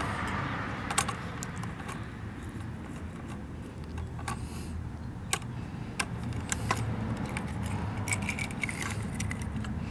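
A small plastic toy bin clatters as it is tipped and set back down.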